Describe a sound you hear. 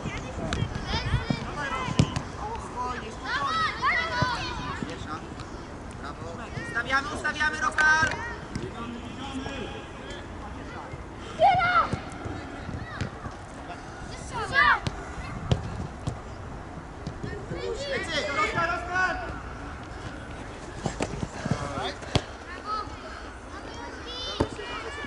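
Children shout to each other across an open outdoor field.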